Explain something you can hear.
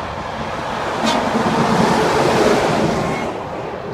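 A truck horn blasts loudly.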